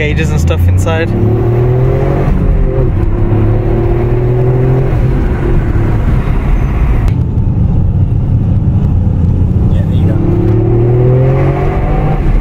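A car engine revs and rises in pitch as the car speeds up.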